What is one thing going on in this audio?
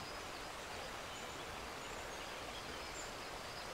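A small waterfall splashes steadily.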